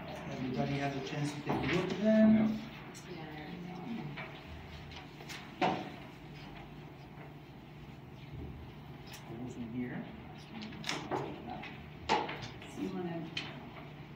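Several adults talk quietly nearby in a small room.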